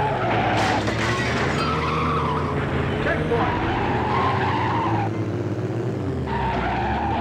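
A race car engine roars and whines, its pitch rising and falling as the car speeds up and slows down.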